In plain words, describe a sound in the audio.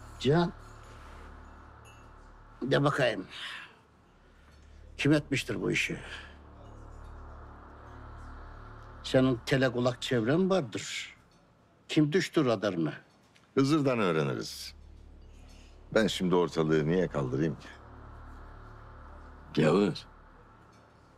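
A middle-aged man speaks tensely, close by.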